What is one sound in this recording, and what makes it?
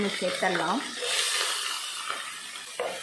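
Chopped onions drop into hot oil in a pan and sizzle.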